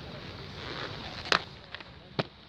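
Inline skates scrape and clack along a concrete ledge.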